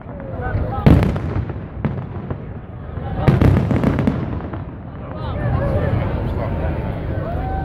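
A crowd of men and women chatters and cheers outdoors.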